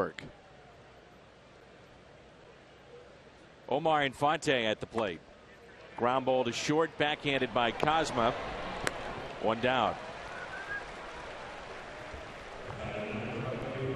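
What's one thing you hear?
A large crowd murmurs in a stadium, outdoors.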